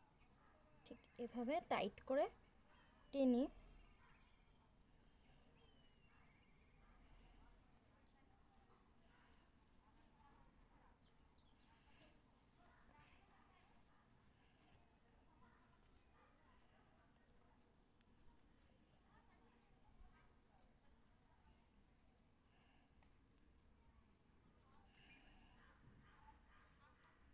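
Yarn rustles softly as it is handled.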